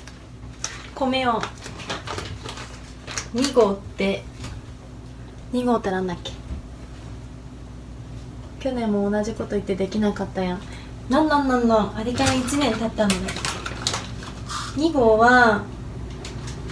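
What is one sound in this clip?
A young woman speaks close by in short, lively, sing-song bursts.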